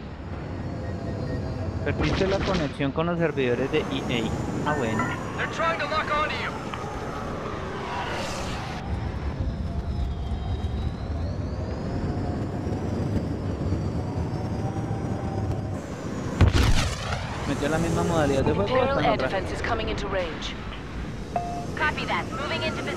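A starfighter engine roars steadily.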